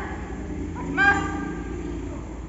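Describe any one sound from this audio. A young girl gives a sharp, loud shout.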